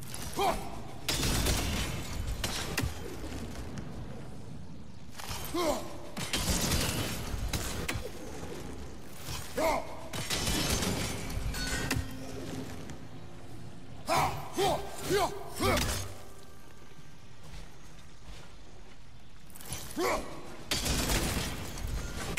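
An axe strikes with a heavy crunching thud.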